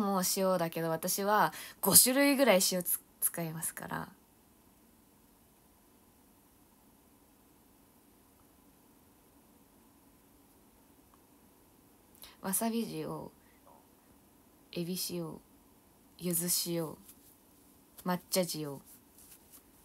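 A young woman talks animatedly and close up, with a long silent pause.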